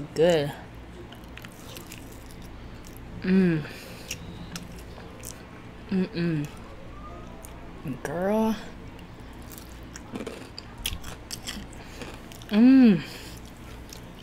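A young woman chews and crunches food close to a microphone.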